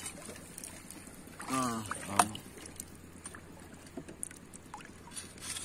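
Water gurgles softly with faint bubbling clicks.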